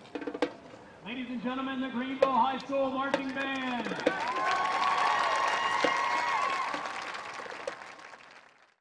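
A marching band plays brass chords outdoors, ringing across an open field.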